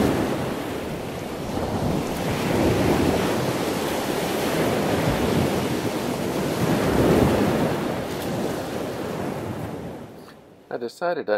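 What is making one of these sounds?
Wind gusts loudly outdoors on open water.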